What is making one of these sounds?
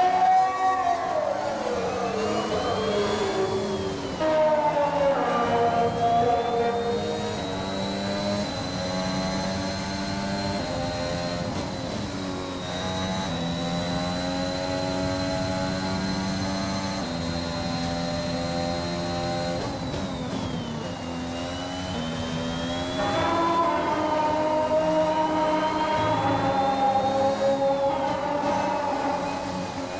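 A racing car engine whines at high revs, rising through the gears and dropping as the car brakes for corners.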